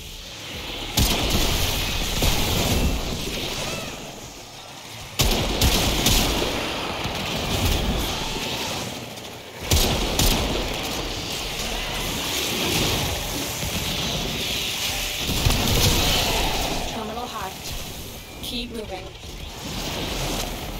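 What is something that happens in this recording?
Game explosions and impacts thud heavily.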